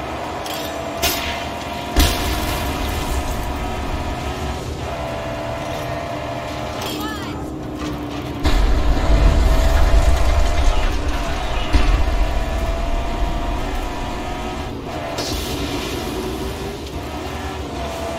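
A vehicle engine roars and hums steadily.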